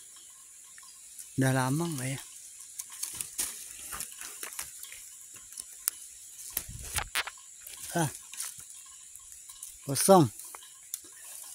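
Leaves rustle as a hand pushes branches aside.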